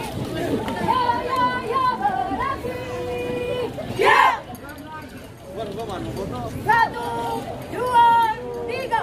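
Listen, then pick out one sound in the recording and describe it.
A man shouts marching commands loudly.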